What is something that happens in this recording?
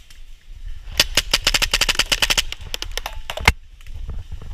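A paintball gun fires a rapid burst of shots close by.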